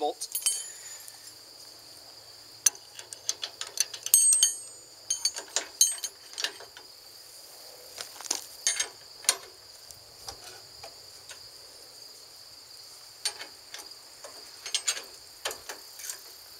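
A wrench clicks against a metal hitch bolt.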